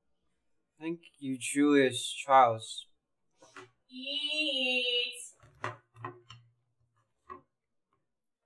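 Young people talk with animation.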